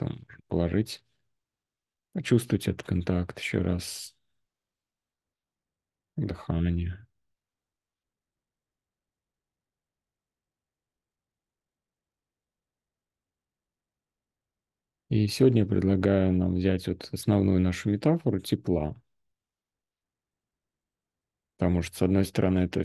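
A man speaks calmly over an online call, in bursts with long pauses.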